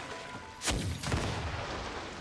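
Explosive blasts boom in quick bursts.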